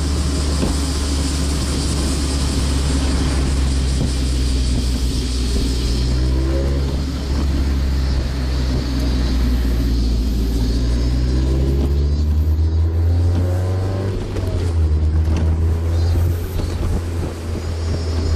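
Wind rushes past an open-top car.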